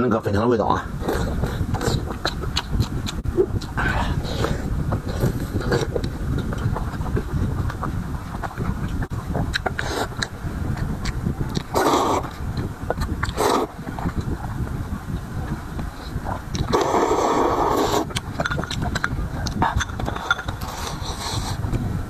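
A man chews and smacks loudly close to a microphone.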